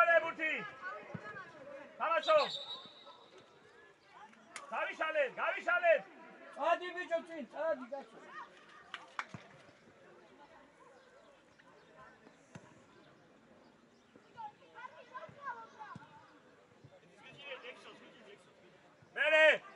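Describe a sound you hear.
Young players shout to each other across an open field.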